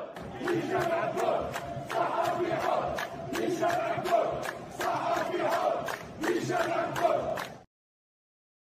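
A large crowd chants and shouts outdoors.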